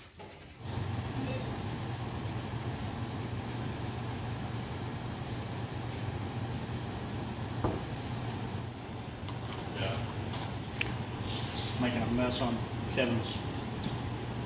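Metal cans clink as they are handled.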